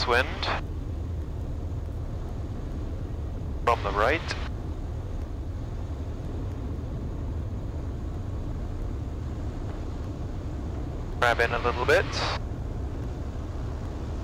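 A small propeller plane's engine drones steadily in flight.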